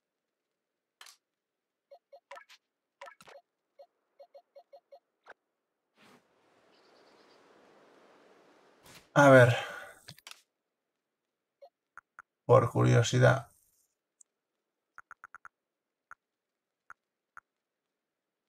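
Short electronic menu blips tick in quick succession.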